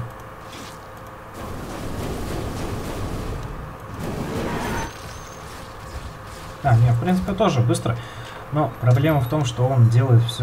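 A large beast snarls as blows strike it in a fight.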